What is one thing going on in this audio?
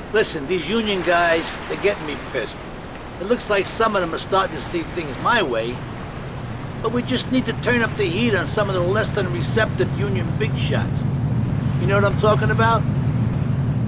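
A man speaks calmly and firmly, close by.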